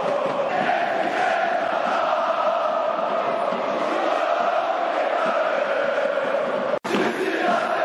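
A large stadium crowd chants loudly in unison.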